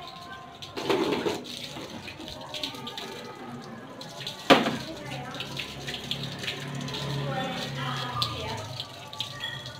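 Water sprays from a hose and splashes onto a motorbike.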